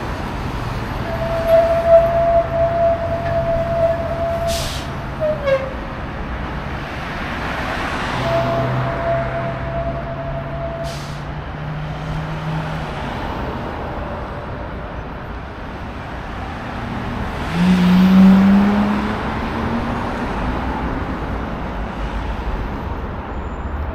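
Traffic rumbles steadily along a nearby street, with cars passing by now and then.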